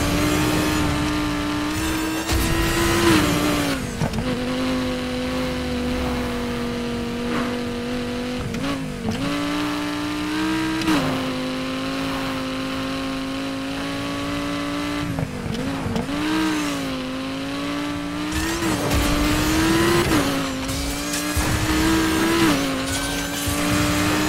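A sports car engine roars loudly, its pitch rising and dropping with each gear change.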